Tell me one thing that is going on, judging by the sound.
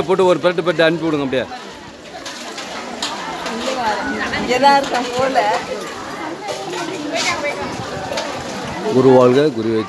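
A crowd of women and men chatter nearby.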